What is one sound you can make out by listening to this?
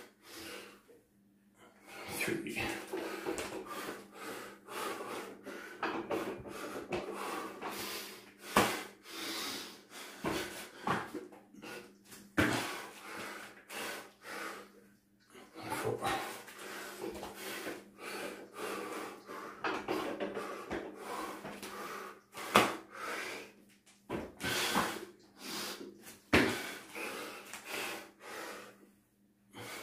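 A man breathes hard and heavily.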